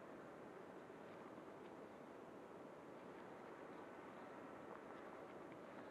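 A small drone's propellers whir as it flies.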